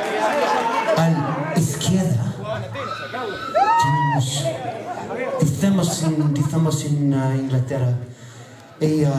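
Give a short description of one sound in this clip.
A man talks loudly through a microphone over loudspeakers.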